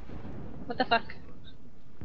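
A creature lets out a short, harsh screech.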